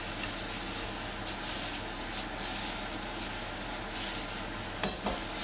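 A pan scrapes and rattles on a stove grate as it is tossed.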